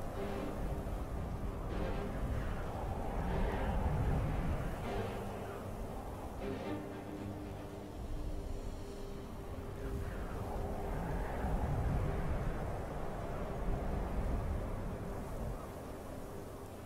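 Magical spells hum and crackle steadily.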